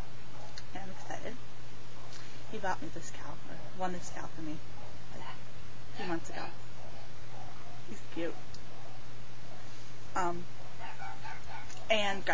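A young girl talks in short, cheerful bursts close to the microphone.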